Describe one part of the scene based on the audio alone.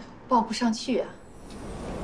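A woman speaks briefly and calmly.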